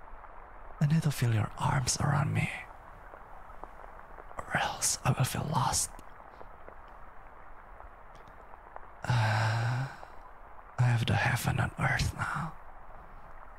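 A young man speaks playfully and close to a microphone, in short bursts.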